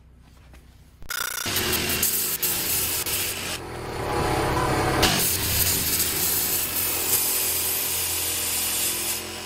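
A cordless jigsaw buzzes loudly, cutting through wood.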